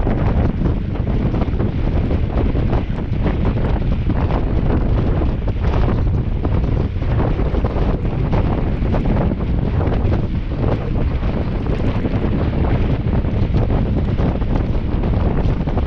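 Wind rumbles loudly against a microphone.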